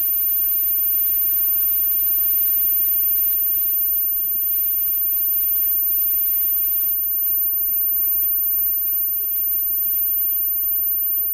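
A bass guitar rumbles low and steady.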